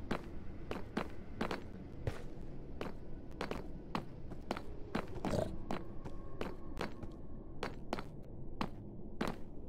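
Footsteps tread steadily on hard stone.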